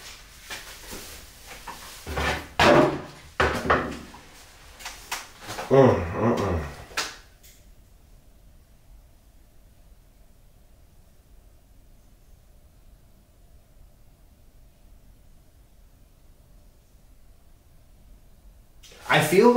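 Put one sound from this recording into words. A man talks quietly and nearby.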